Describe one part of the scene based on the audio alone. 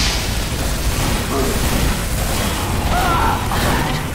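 A burst of flame whooshes and crackles.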